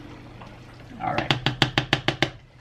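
A finger taps repeatedly on a stove's touch controls.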